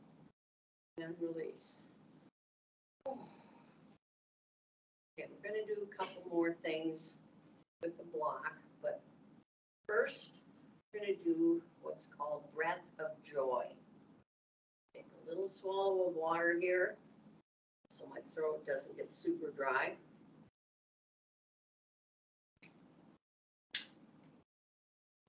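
A middle-aged woman speaks calmly and clearly into a microphone, with pauses between phrases.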